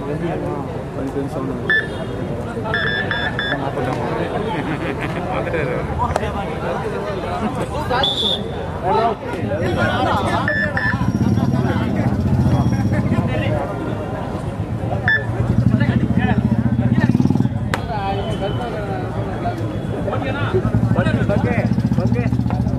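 A large outdoor crowd chatters and shouts.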